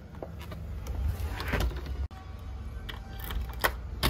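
A key scrapes and turns in a door lock.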